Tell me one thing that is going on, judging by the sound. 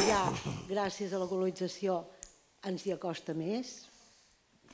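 A woman speaks up in a large room, asking a question at a steady pace.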